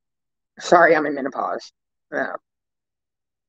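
A woman speaks briefly through a microphone on an online call.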